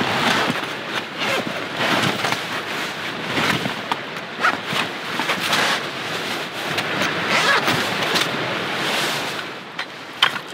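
Canvas rustles and scrapes as a bag is handled.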